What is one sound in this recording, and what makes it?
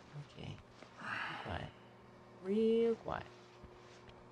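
A young man speaks quietly into a headset microphone.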